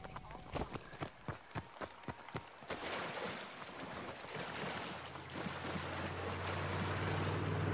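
Water rushes and splashes steadily nearby.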